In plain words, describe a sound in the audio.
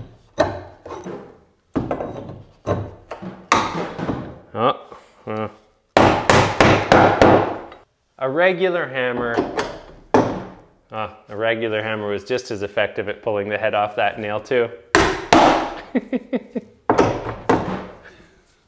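A hammer strikes wood with sharp knocks.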